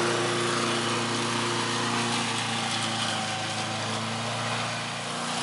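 A lawnmower engine drones steadily.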